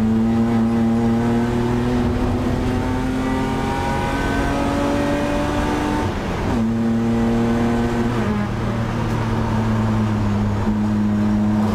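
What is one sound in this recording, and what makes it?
A racing car engine roars loudly from close inside the car, its pitch climbing and then dropping sharply at a gear change.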